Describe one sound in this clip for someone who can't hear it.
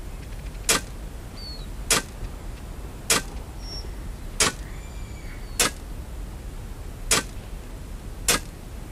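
A shovel digs into dirt with regular thuds.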